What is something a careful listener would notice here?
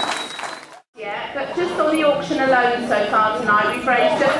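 A woman sings into a microphone over a loudspeaker.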